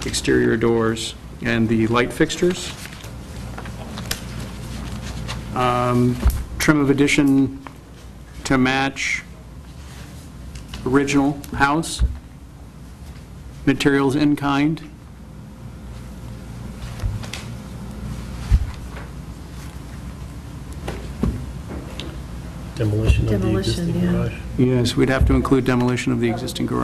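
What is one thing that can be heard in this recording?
A man answers calmly through a microphone.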